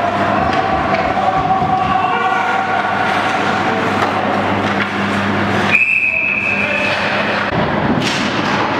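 Ice skates scrape and carve across an ice rink.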